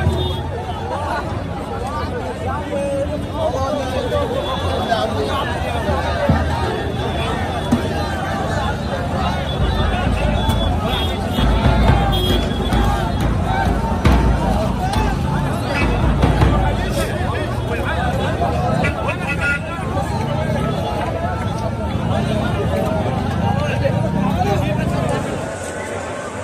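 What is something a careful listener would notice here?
A large crowd chants loudly outdoors.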